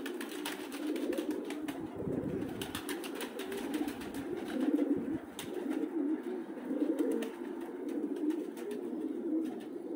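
Pigeon wings flap and clatter briefly as a bird takes off.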